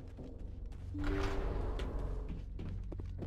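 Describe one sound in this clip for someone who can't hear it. A heavy metal door slides open with a mechanical whir.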